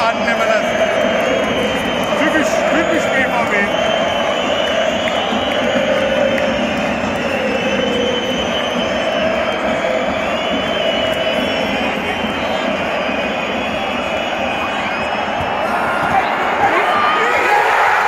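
A large stadium crowd chants and sings in unison.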